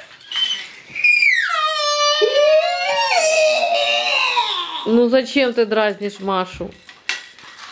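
A baby girl squeals and babbles loudly close by.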